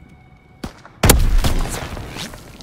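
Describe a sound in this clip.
A submachine gun fires a short, loud burst.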